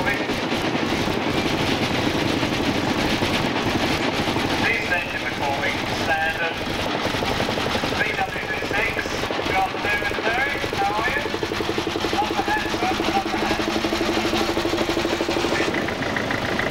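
An old tractor engine chugs steadily close by.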